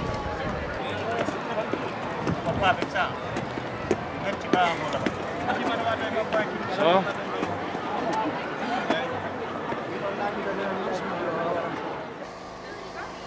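A young man talks cheerfully, close by.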